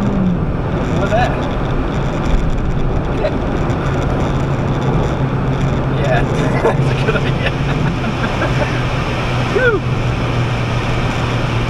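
A car engine hums steadily as the car drives at speed.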